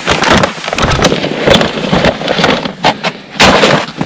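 Plastic crinkles and rustles as a bag is handled.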